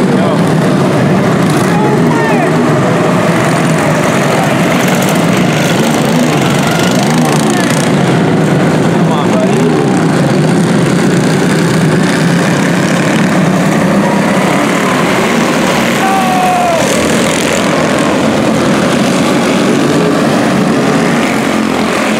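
Small racing kart engines buzz and whine loudly, close by.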